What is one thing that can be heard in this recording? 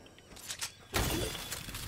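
A pickaxe strikes a wooden fence with a loud thud.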